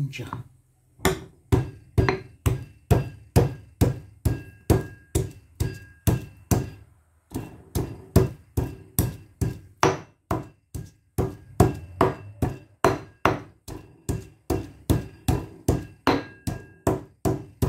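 A pestle pounds in a stone mortar.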